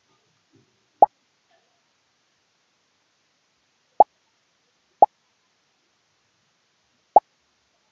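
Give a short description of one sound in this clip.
Balloons pop in a computer game with short, sharp sound effects.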